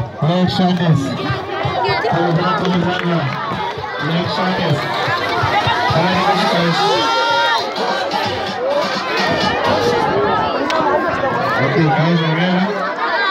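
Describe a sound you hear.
A crowd of men and women talks and shouts close by.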